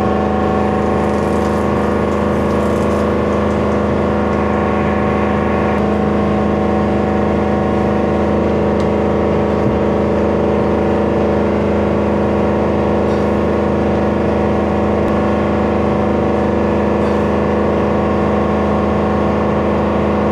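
A large diesel engine drones loudly and steadily.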